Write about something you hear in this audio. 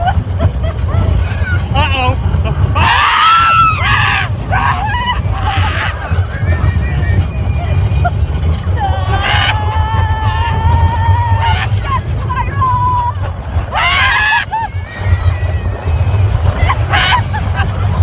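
A woman laughs and shrieks close by.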